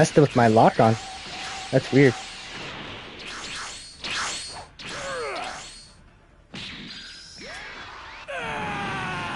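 Energy blasts whoosh and crackle.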